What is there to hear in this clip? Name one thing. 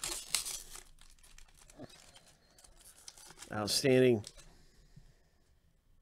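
A plastic wrapper crinkles and tears open.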